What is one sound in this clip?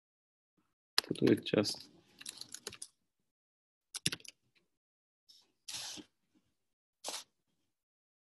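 A young man speaks in short bursts through a microphone.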